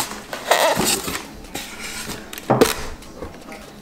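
Foam blocks squeak as they are pulled out of a box.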